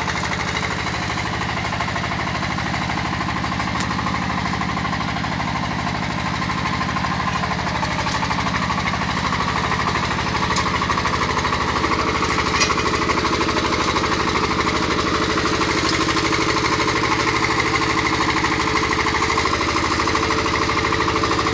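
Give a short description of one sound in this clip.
A small diesel engine chugs steadily and loudly nearby.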